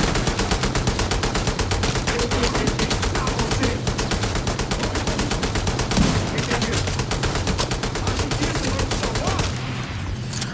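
Rapid bursts of automatic gunfire rattle close by.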